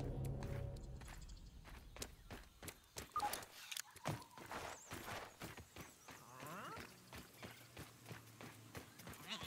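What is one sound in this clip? Footsteps crunch steadily on dirt.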